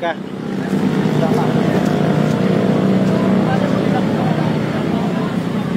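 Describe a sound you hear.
Motorbike engines idle nearby.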